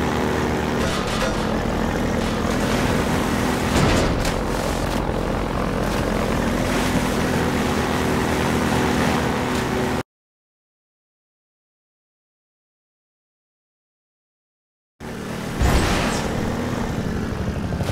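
A boat engine drones steadily, echoing in a tunnel.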